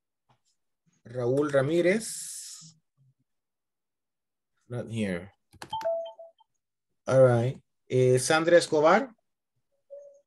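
A young man speaks calmly over an online call, in short bursts.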